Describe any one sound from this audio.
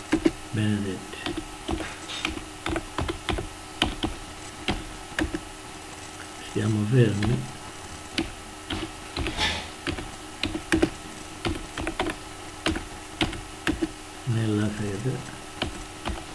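An elderly man speaks slowly in short phrases, close to a microphone.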